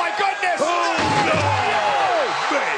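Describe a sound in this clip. A heavy body crashes down onto a table with a loud thud.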